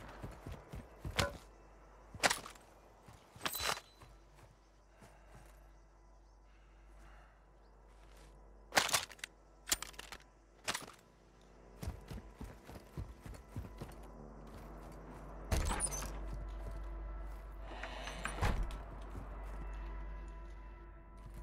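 Footsteps run quickly over dry ground.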